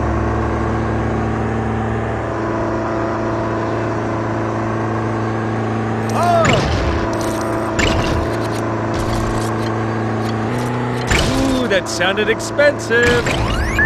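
A small motor engine hums steadily.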